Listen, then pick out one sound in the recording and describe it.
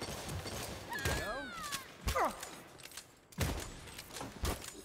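Heavy punches thud in a brawl.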